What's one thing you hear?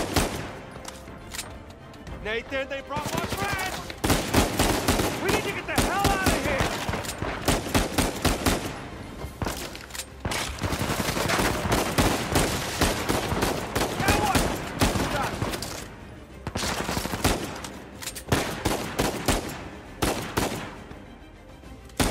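Pistol shots ring out again and again, echoing in a large hall.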